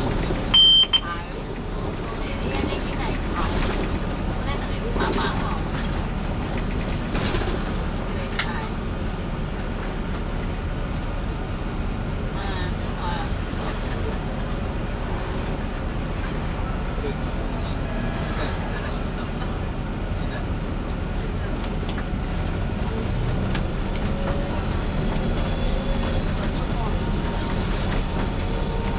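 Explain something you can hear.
A bus engine rumbles low and steady from inside the bus.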